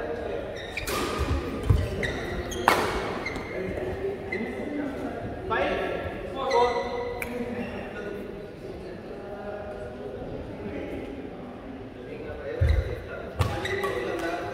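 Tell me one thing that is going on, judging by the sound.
A racket smacks a shuttlecock in a large echoing hall.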